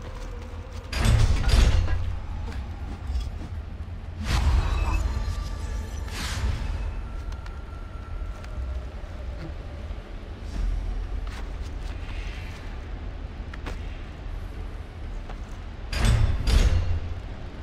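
A loud whooshing rush sweeps past.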